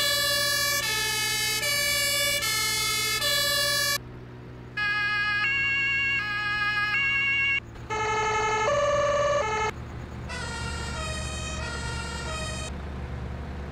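An emergency siren wails in alternating two-tone and changing patterns.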